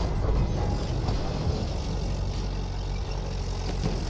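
Shells burst near a tank.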